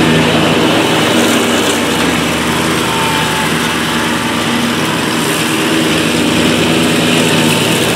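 A zero-turn mower cuts through thick tall grass.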